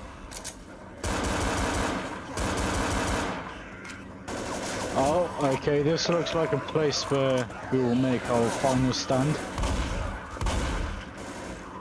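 Pistols fire rapid gunshots.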